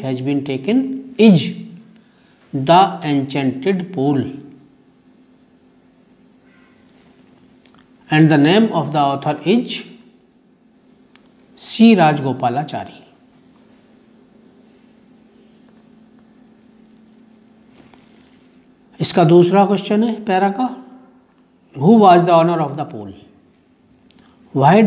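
A middle-aged man reads aloud close to a microphone, in calm phrases with long pauses.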